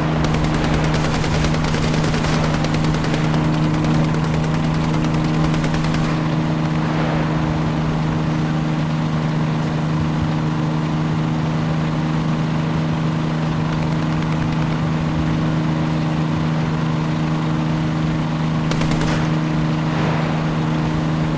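A tank engine drones as the tank drives.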